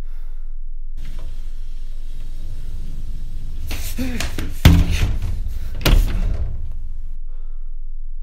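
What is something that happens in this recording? Footsteps thud on a floor as a young man moves quickly.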